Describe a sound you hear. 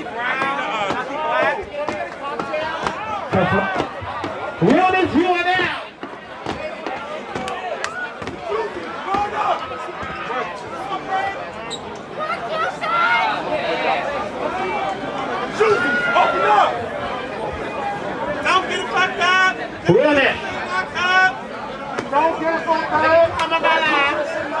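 A large crowd cheers and shouts loudly in an echoing hall.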